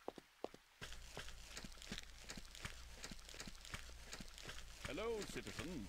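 Heavy footsteps tread steadily at a walking pace.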